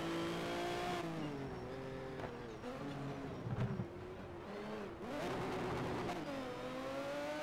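A racing car engine drops in pitch as it downshifts under braking.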